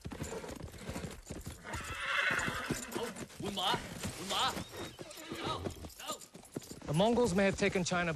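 A horse gallops by with pounding hooves.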